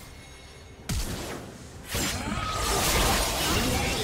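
Game combat impacts thud and burst.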